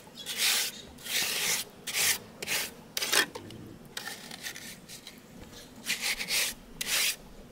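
A trowel scrapes and smooths wet cement in repeated strokes.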